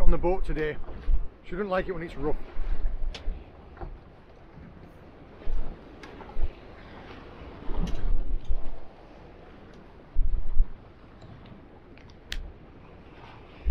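Waves slosh against a small boat's hull.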